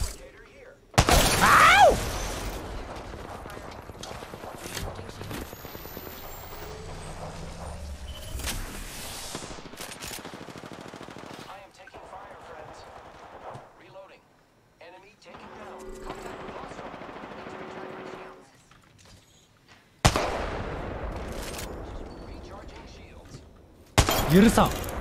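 Loud rifle shots crack with echoing tails.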